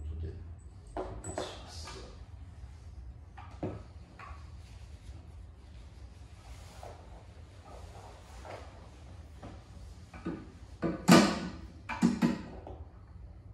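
Metal parts knock and clatter against each other.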